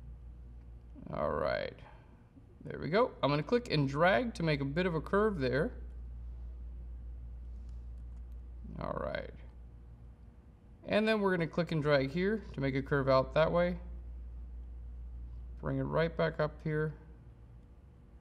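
A man talks calmly into a microphone, in short bursts.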